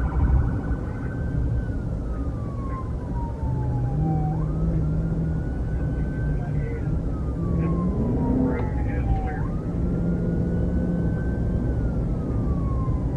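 A car engine hums steadily as tyres roll along a road.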